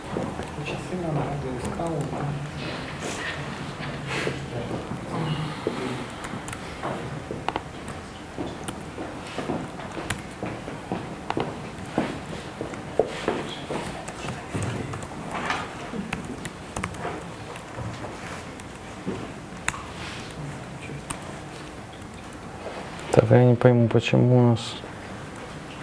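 Keys clatter as a man types on a laptop keyboard.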